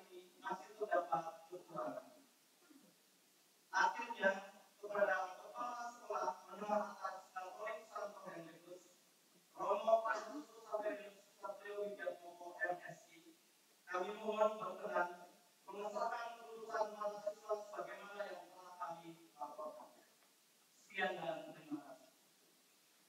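A man speaks calmly into a microphone over loudspeakers in an echoing hall.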